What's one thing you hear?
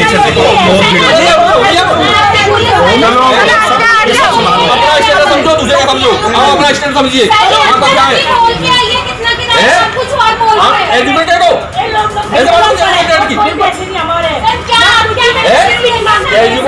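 A woman shouts angrily close by.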